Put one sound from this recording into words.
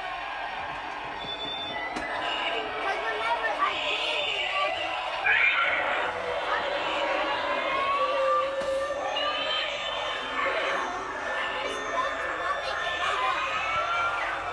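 Young children talk and call out excitedly nearby.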